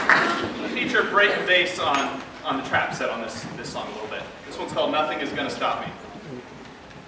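A man talks with animation in a large echoing hall.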